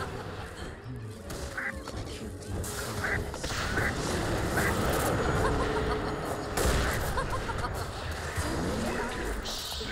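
Weapons clash and strike in quick blows.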